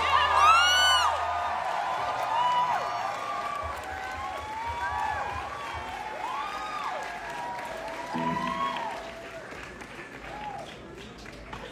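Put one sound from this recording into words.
An electric guitar's notes bend up and down in swooping glides.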